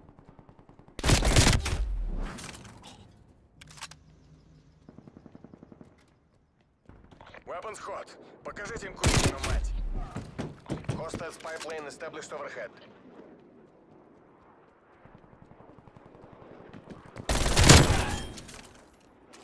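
Gunshots fire in short rapid bursts.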